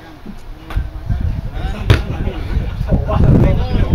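A football is kicked with a thump.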